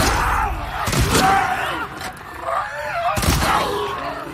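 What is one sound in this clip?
A shotgun fires with loud booms.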